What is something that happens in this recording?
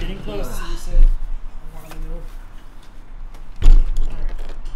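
A heavy wheel knocks and thuds on a table.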